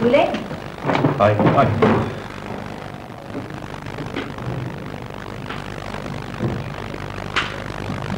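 Footsteps walk away across a hard floor.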